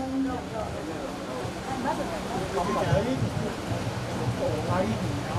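A man speaks through a microphone and loudspeaker outdoors.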